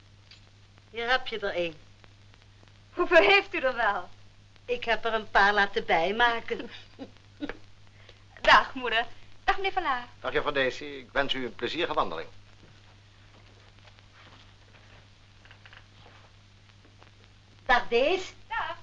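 A middle-aged woman talks with animation.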